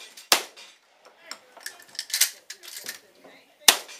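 A shotgun's action clacks as it is worked.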